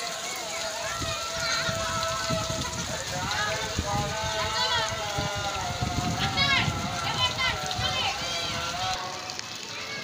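Young children chatter and call out close by.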